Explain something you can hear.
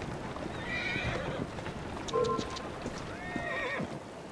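Carriage wheels rumble over cobblestones.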